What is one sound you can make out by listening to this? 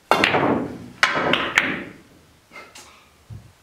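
Billiard balls clack against each other and roll on the table.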